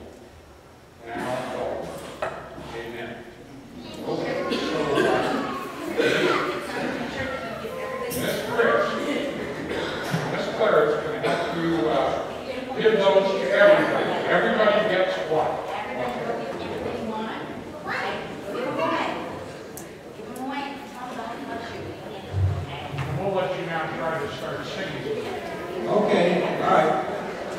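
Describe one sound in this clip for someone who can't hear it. Young children chatter and call out.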